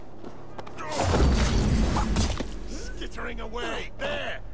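A blade strikes a man with a heavy thud.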